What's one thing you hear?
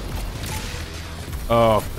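A heavy gun fires with loud, booming blasts.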